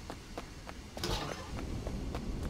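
A heavy metal door swings and bangs.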